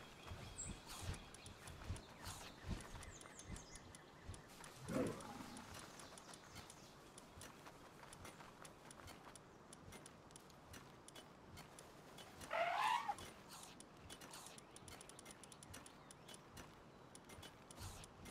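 Soft menu clicks tick as items are scrolled through.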